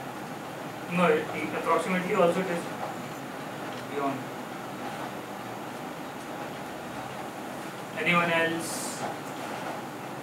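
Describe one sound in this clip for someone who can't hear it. An adult lecturer speaks in short bursts, with long pauses between.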